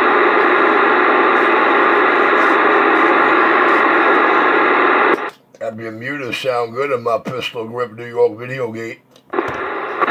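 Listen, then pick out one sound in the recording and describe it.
Static hisses loudly from a radio loudspeaker.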